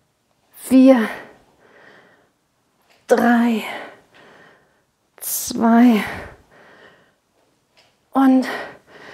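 A woman speaks in short, energetic bursts, close to a microphone.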